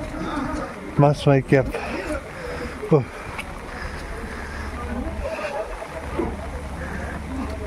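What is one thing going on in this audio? Footsteps tread on wet stone.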